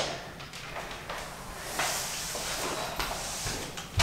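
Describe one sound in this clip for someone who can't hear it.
A dust mop swishes across a wooden floor.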